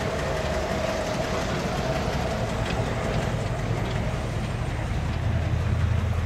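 A large car engine idles with a deep, steady rumble.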